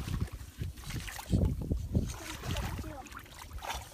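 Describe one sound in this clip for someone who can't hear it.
Shallow water splashes as a stick is poked into it.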